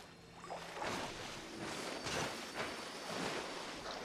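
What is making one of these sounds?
Water splashes in a video game.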